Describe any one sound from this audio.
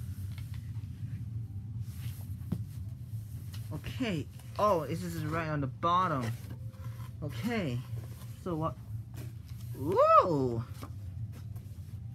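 Cardboard rustles and knocks as a box is handled.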